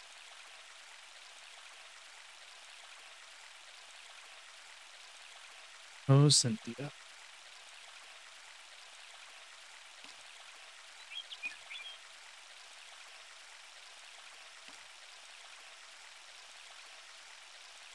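Water flows and gurgles gently.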